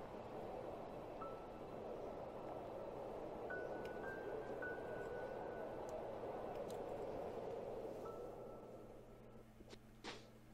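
Soft, gentle music plays and fades away.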